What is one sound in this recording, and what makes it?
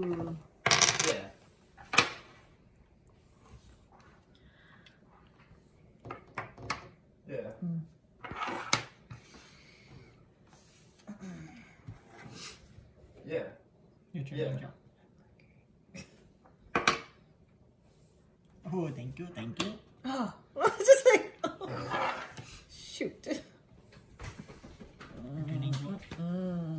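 Dominoes click as they are placed on a wooden table.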